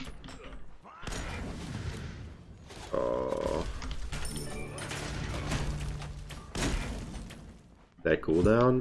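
Game sound effects whoosh and blast.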